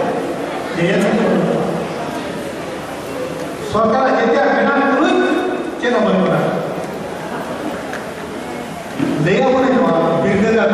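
An elderly man speaks with animation through a microphone and loudspeakers in an echoing hall.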